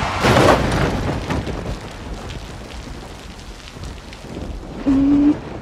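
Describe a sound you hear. A car engine hums as a vehicle drives slowly through the rain.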